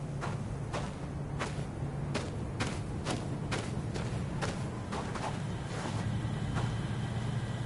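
Footsteps crunch steadily on sand and gravel.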